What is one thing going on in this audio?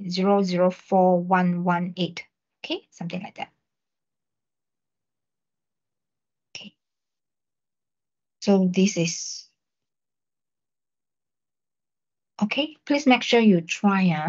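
A young man talks calmly through an online call, in short bursts with pauses.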